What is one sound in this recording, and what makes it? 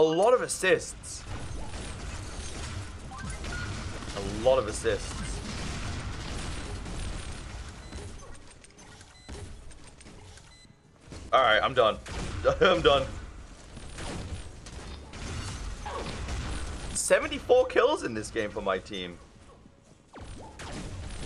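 Video game gunfire rattles and explosions boom.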